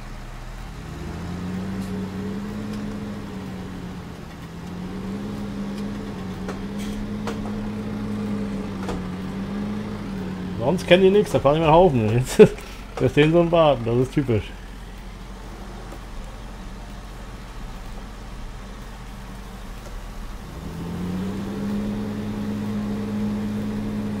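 A loader's engine hums and revs as it drives.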